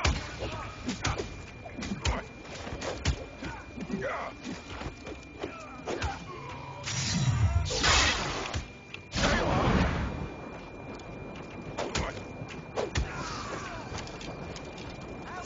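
Sword strikes and magic blasts clash and thump in quick bursts.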